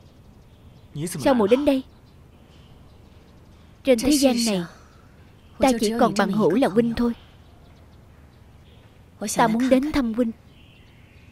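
A young woman speaks calmly and softly, close by.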